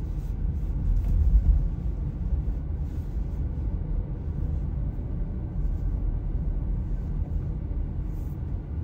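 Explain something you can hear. A car engine hums low and steady from inside a moving car.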